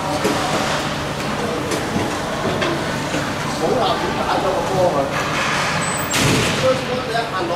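Skates scrape across the ice in a large echoing rink.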